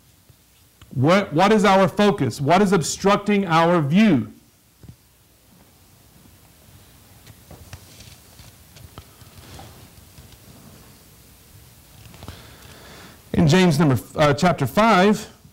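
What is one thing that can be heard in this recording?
A man speaks with animation into a microphone in an echoing room.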